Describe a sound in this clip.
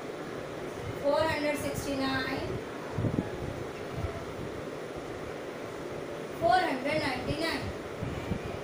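A woman speaks calmly close by, in short bursts.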